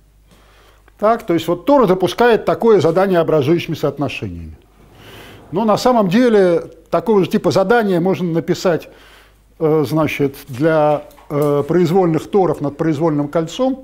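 An older man lectures calmly through a microphone.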